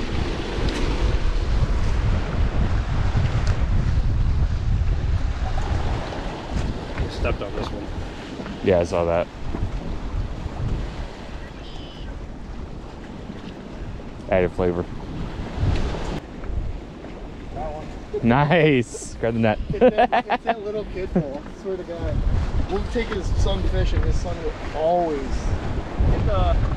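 Wind buffets the microphone outdoors, gusting louder and softer.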